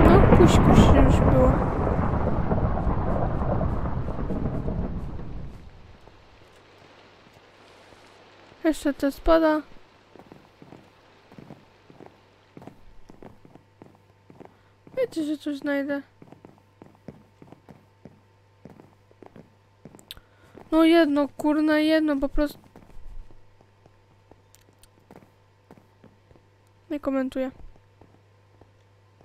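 Footsteps tap quickly on wooden boards.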